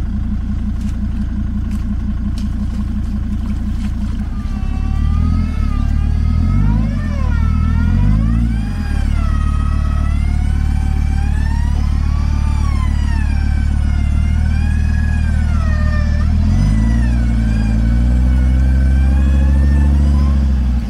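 A large engine idles with a deep, steady rumble.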